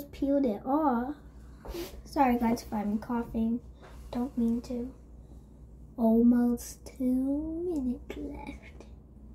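A young girl talks animatedly close by, her voice rising and falling.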